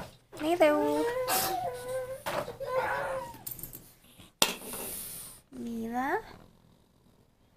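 A dog howls and whines up close.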